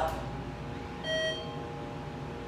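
An elevator chime rings once.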